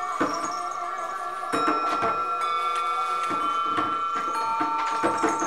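Singing bowls ring with long, layered humming tones.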